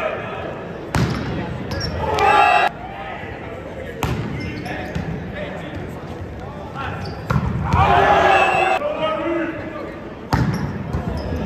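A volleyball is struck hard by a hand.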